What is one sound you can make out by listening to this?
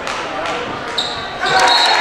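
A referee's whistle blows briefly.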